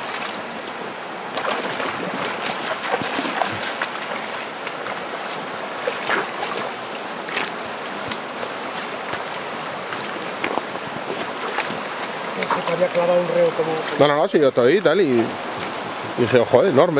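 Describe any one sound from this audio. A river rushes steadily over rocks.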